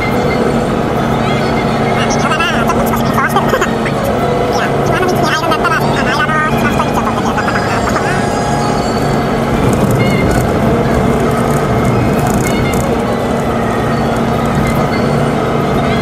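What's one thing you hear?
Tyres roll on a paved road.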